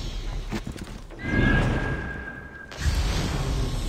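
Footsteps thud on a flat rooftop.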